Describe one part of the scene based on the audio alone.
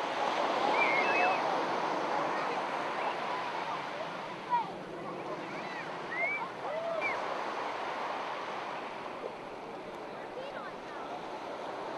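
Children splash through shallow water.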